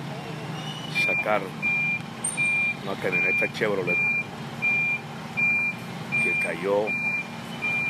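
A warning alarm on a truck beeps at a steady, even pace.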